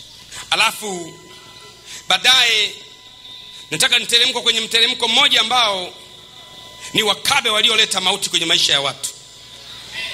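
A man preaches with emotion into a microphone, in bursts.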